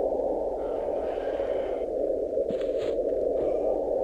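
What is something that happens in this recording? A book opens with a short papery rustle.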